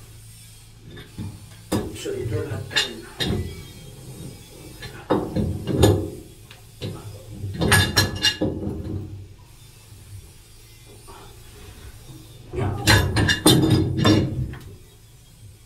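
A pipe wrench clanks and scrapes against a metal pipe fitting.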